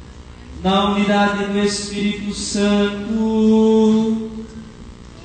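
A man chants through a loudspeaker.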